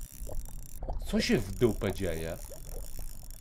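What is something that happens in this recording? A man speaks casually into a close microphone.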